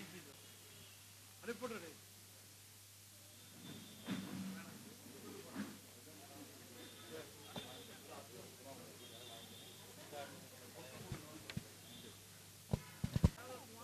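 A man speaks over a loudspeaker.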